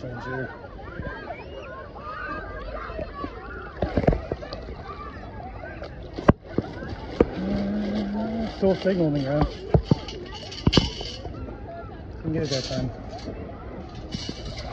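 Legs wade through shallow water with swishing splashes.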